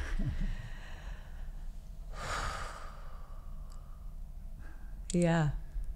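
A woman speaks cheerfully close to a microphone.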